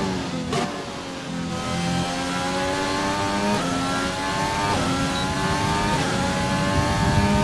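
A Formula One car's turbocharged V6 engine screams as it accelerates and shifts up through the gears.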